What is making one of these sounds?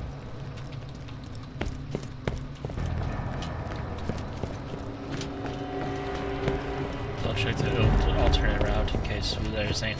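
Footsteps clank on metal stairs and grating.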